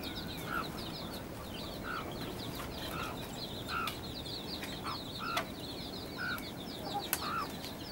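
Chicks cheep steadily.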